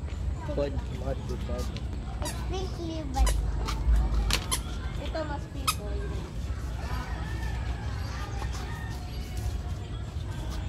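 A young child speaks in a high voice close by.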